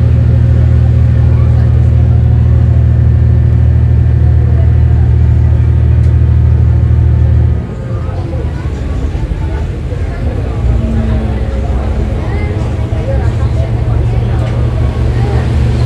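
A diesel railcar engine drones under load, then throttles back.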